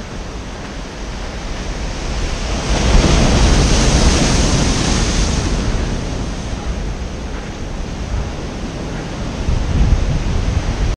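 Waves crash and roar against rocks on the shore.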